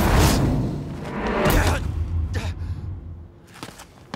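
A body slams onto hard ground.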